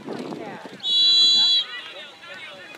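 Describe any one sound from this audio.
A referee's whistle blows a short, shrill blast outdoors.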